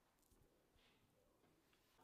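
A spoon scrapes softly against dough.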